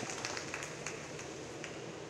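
A swimmer splashes through water in an echoing hall.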